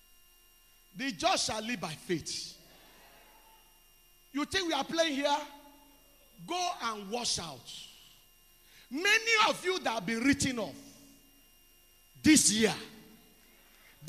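A man preaches loudly and passionately into a microphone in short bursts, heard through loudspeakers in an echoing hall.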